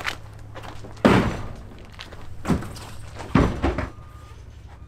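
Tyres thud as they are dropped and stacked.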